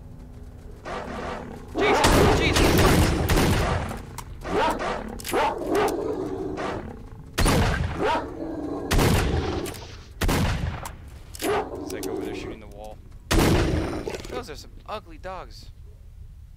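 Dogs snarl and yelp.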